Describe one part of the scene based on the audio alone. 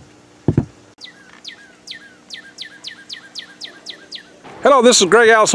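A bird chirps repeatedly in quick, sharp notes.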